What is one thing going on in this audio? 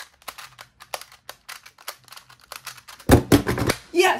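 A puzzle clicks and clacks rapidly as it is turned by hand.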